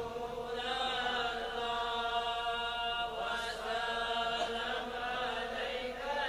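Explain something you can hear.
A man chants in a melodic voice through a microphone and loudspeaker, with a slight echo.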